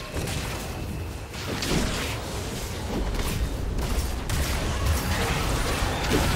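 Magic spells crackle and burst during a fast fight.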